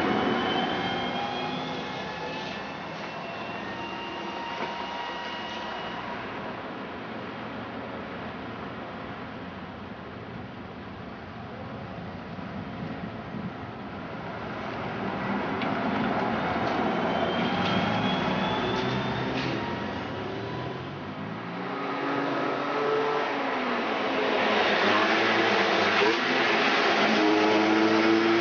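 A trolleybus hums and whines as it drives along.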